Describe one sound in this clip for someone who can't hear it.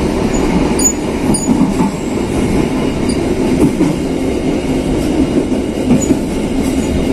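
A train rumbles steadily along the rails.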